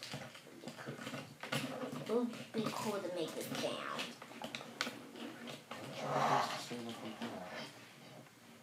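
Plastic toy parts click as they are twisted into place.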